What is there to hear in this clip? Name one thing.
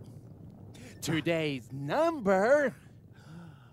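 A man talks in high, comic cartoon voices.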